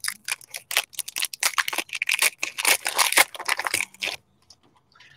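Foil wrappers crinkle and rustle as a card pack is torn open.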